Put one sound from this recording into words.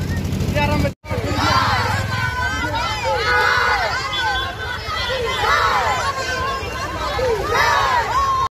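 A crowd of men and women chant slogans loudly outdoors.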